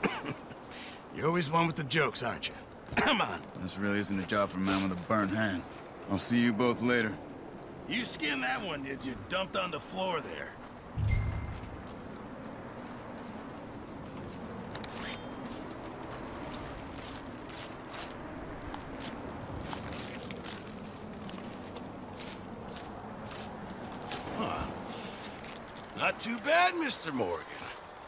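An older man answers gruffly, close by.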